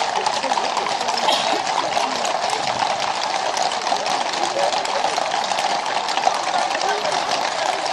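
Many horses' hooves clop steadily on a paved road.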